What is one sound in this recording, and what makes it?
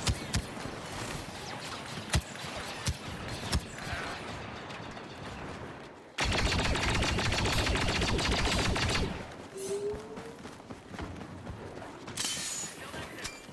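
Blaster rifles fire in short, sharp bursts.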